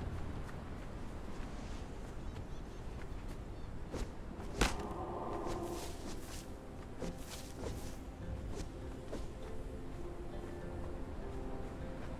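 Footsteps crunch quickly across sand.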